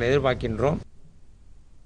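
A man speaks into microphones.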